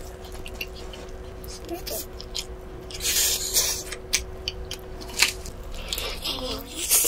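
A woman chews food noisily, close to a microphone.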